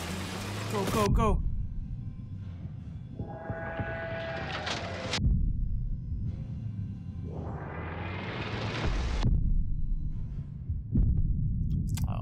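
A tank cannon fires with loud booms.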